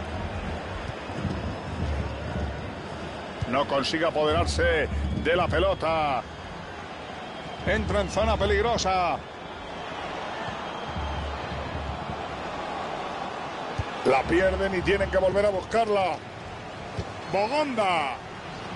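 A large stadium crowd murmurs and roars steadily in the background.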